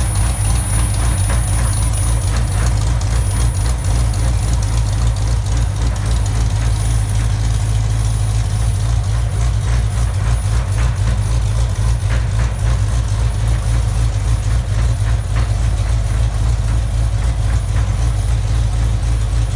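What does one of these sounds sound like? A supercharged engine idles loudly with a deep, steady rumble close by.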